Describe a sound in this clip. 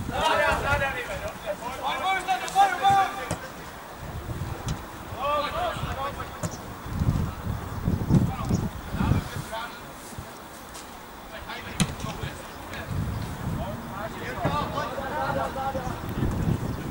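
Young men shout to each other from across an open field.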